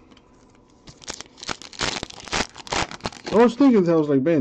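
A foil trading card pack crinkles as it tears open.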